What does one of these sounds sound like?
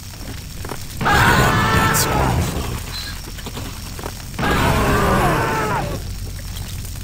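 A heavy explosion booms and rumbles.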